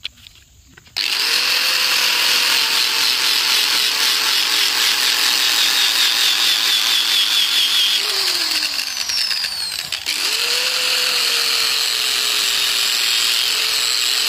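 An angle grinder whines loudly as it grinds a metal blade.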